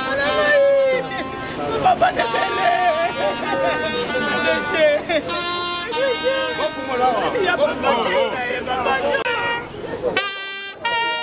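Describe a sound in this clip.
A woman wails and cries out loudly in grief close by.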